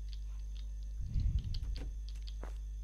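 A metal locker door swings open with a clatter.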